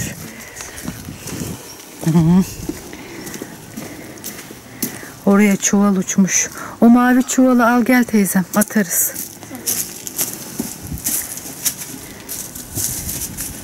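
Boots crunch on dry leaves and dirt.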